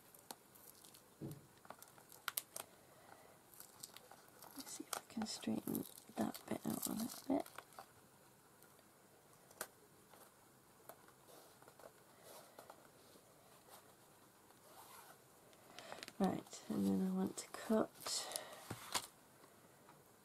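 Stiff paper pages rustle and tap as a small book is handled.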